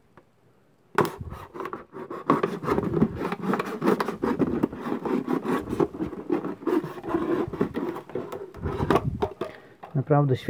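A knife blade scrapes and crackles against a thin plastic bottle.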